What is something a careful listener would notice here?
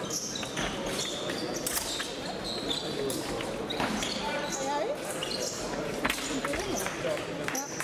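Sports shoes squeak sharply on a hard floor.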